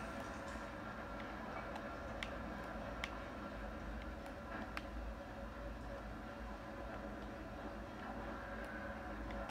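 A video game plays through a small television speaker.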